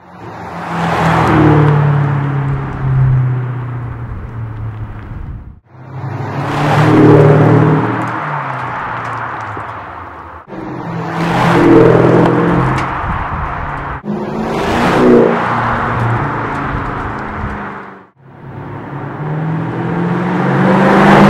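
A car engine roars loudly as a car drives past close by, then fades away.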